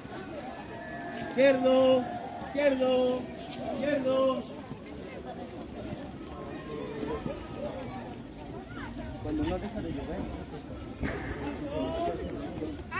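Children chatter and talk nearby, outdoors.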